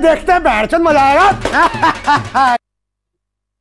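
A man sings loudly and with animation.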